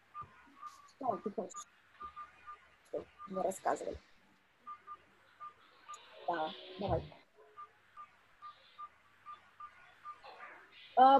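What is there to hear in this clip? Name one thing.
A young woman speaks calmly through an online call, with pauses.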